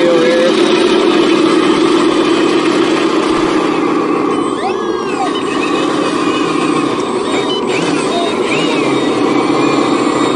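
Small electric motors whine steadily as toy trucks drive over dirt.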